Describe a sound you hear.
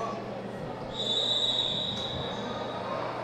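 A referee's whistle blows a long shrill note.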